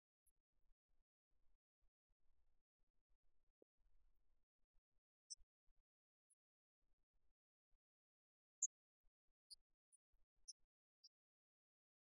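A shuttlecock is struck back and forth with rackets.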